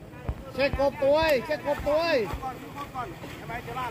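Water splashes as a swimmer thrashes his arm.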